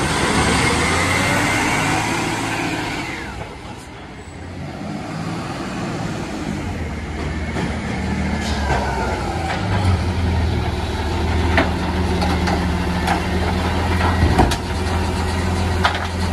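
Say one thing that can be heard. A garbage truck engine rumbles and idles nearby.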